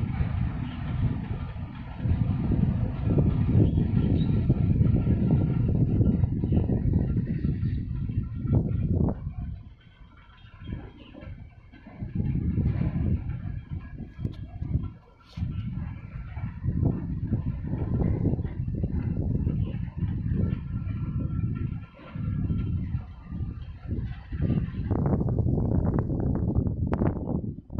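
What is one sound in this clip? Wind buffets loudly and in gusts outdoors.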